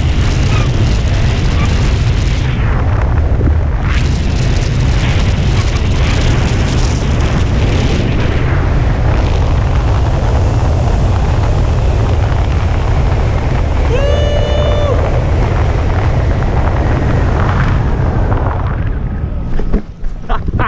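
Wind rushes loudly and steadily over the microphone.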